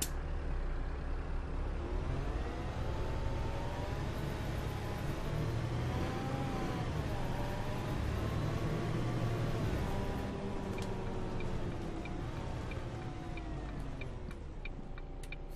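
A bus engine hums, rising and falling in pitch as the bus drives.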